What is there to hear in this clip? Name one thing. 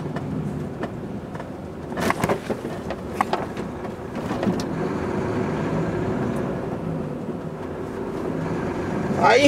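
A truck's diesel engine hums steadily from inside the cab.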